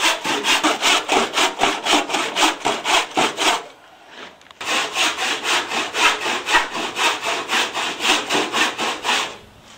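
A hand saw cuts through wood with fast, rhythmic strokes.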